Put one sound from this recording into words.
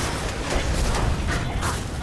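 Heavy gunfire bursts out in loud, rapid shots.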